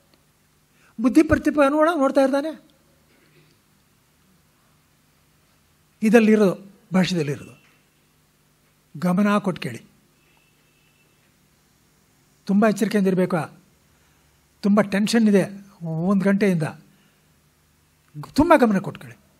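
A man chants slowly in short melodic phrases, with pauses between them.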